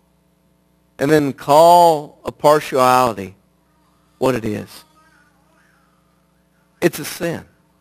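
A middle-aged man speaks with emphasis into a microphone, in short bursts with pauses.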